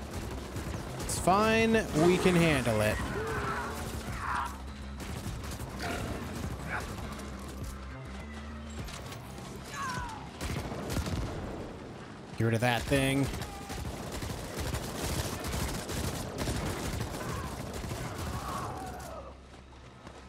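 Energy weapons zap and crackle in a game battle.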